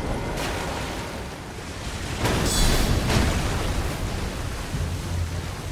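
Water splashes underfoot.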